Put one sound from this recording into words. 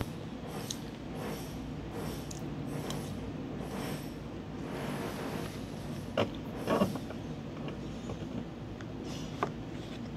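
A woman chews food close by.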